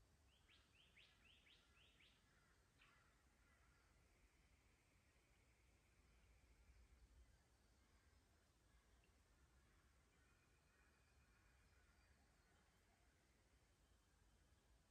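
Water trickles gently over stones in a shallow creek.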